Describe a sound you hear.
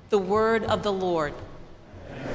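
A middle-aged woman speaks calmly through a microphone in a large echoing hall.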